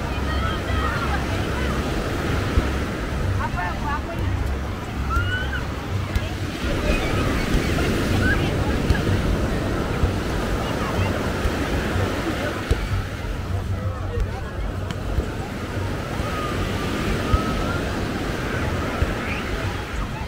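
A ball thumps as players kick it.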